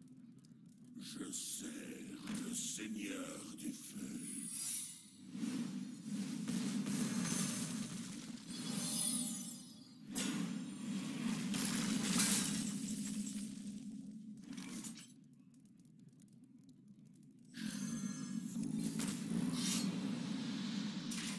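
Magical spell effects whoosh, crackle and burst with loud blasts.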